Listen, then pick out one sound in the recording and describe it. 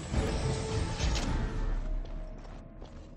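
Magic spells crackle and burst loudly in a fight.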